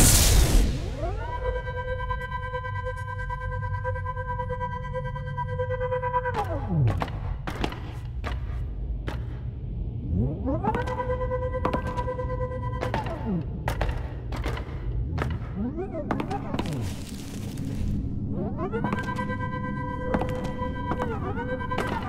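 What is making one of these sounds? A small glowing creature moves with a bright electronic hum that rises, holds steady and falls away.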